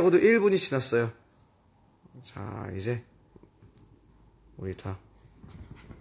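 A young man talks calmly and close up in short bursts.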